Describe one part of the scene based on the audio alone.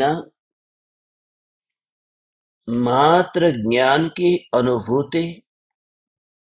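A man speaks slowly and calmly close to a microphone.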